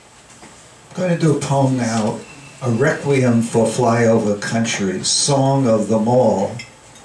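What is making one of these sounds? An elderly man sings close into a microphone.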